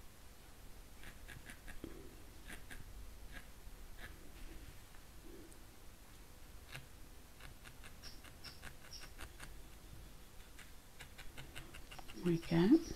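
A needle pokes repeatedly into wool with soft, quick ticks.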